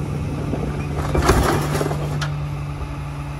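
Garbage tumbles from a bin into a truck's hopper.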